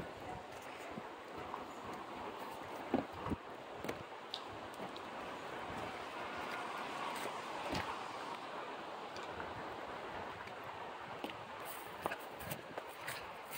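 Strong wind roars and gusts through trees outdoors.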